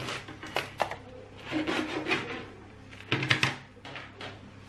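A bread knife saws through a crusty loaf.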